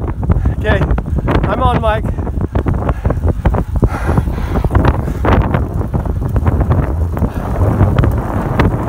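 Bicycle tyres hum on a paved road.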